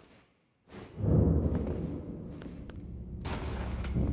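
Footsteps tap on a stone floor in an echoing space.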